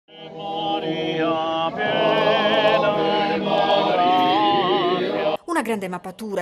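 A group of men sing together close by in deep, droning harmony.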